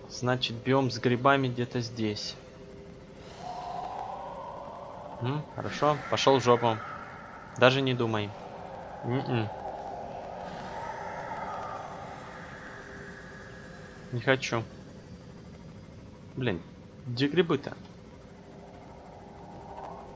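A small submarine's engine hums steadily underwater.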